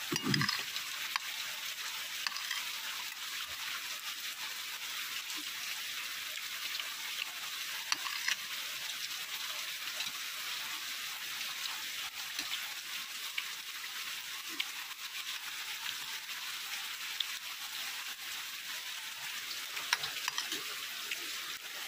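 A spoon scrapes and clinks against a metal plate.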